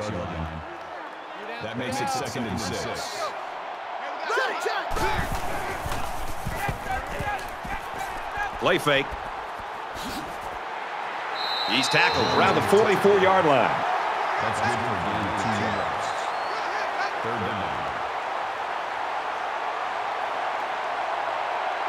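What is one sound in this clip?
A large stadium crowd roars steadily throughout.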